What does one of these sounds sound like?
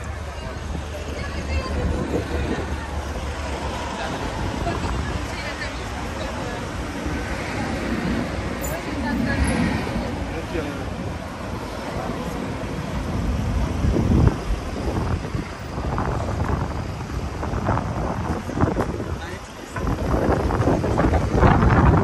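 Traffic rumbles past nearby.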